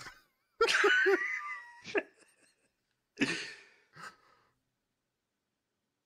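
Men laugh.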